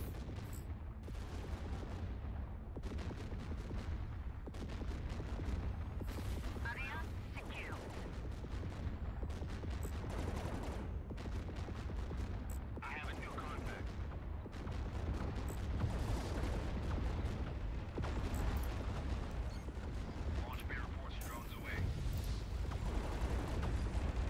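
A spaceship engine rumbles steadily.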